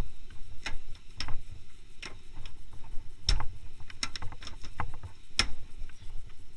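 A hand knocks and taps on a car's metal body.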